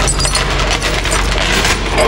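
Metal chains clink and rattle.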